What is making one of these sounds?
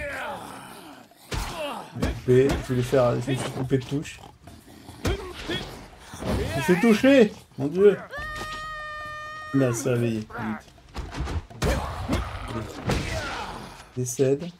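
Punches and blows land with sharp thuds in a fight.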